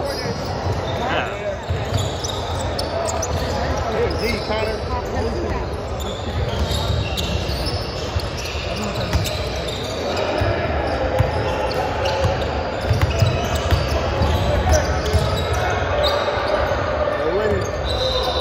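A crowd of young people chatter in a large echoing hall.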